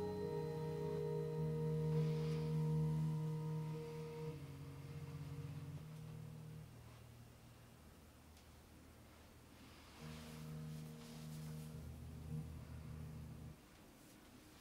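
A synthesizer plays slow, sustained low chords that pause and then return.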